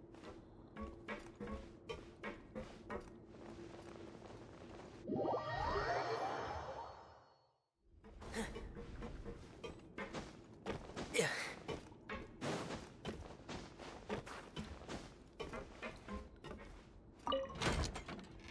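Footsteps clatter quickly across a hollow metal floor.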